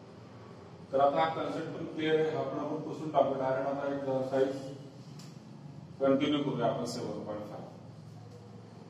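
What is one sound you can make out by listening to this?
A middle-aged man speaks calmly and clearly, as if teaching.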